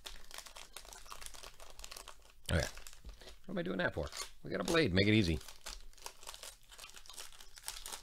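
A foil wrapper crinkles as hands tear it open.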